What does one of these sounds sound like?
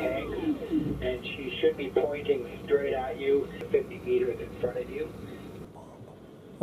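A man speaks calmly over a headset radio.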